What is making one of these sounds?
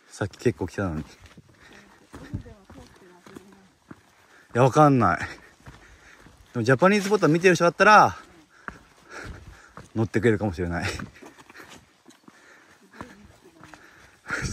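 Footsteps crunch on a dirt trail.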